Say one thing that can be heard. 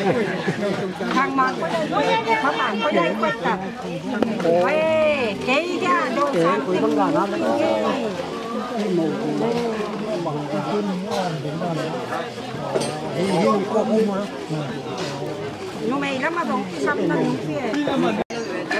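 Several men and women chat as they walk.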